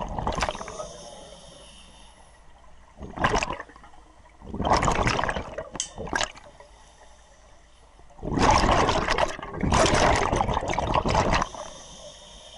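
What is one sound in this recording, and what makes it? Air bubbles from a diver's breathing gurgle and rumble underwater in loud bursts.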